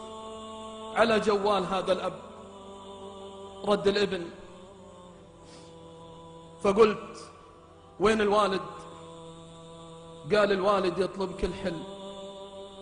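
A man chants through loudspeakers in short bursts, echoing in a large hall.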